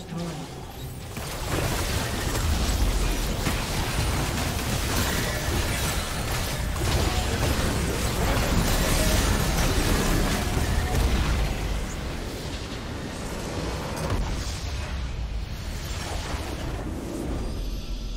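Game spell effects whoosh, crackle and boom during a fight.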